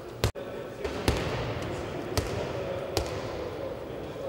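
A ball bounces on a hard floor in a large echoing hall.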